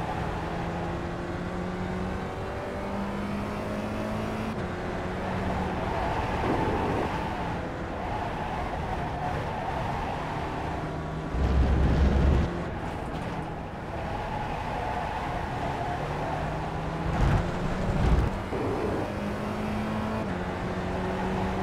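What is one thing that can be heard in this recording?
A Spec Racer Ford race car engine revs hard and shifts up and down through the gears.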